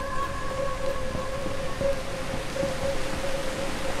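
A waterfall rushes nearby.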